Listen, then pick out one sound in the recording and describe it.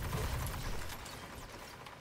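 Energy weapons fire in bursts with a crackling zap.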